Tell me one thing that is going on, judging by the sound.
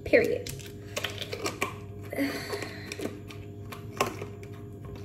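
A plastic bottle cap twists and clicks.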